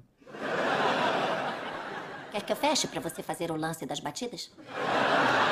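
A young woman speaks.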